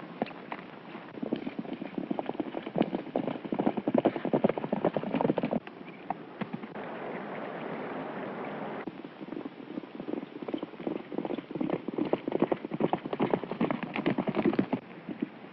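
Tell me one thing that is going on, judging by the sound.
Horses gallop with hooves pounding on the ground.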